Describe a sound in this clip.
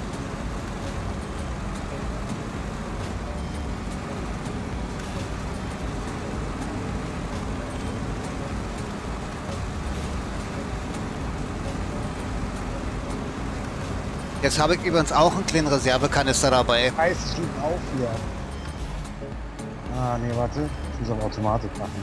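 A heavy truck engine rumbles steadily as the truck crawls along.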